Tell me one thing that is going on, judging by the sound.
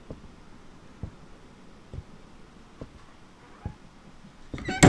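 Footsteps thud slowly and evenly on wooden stairs.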